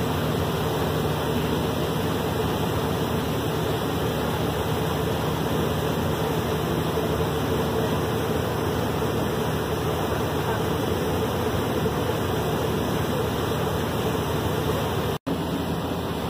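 Heavy rain pours steadily onto a river.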